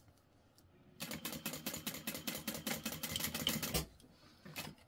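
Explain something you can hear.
A sewing machine runs in a fast, steady rattle of stitches, then stops.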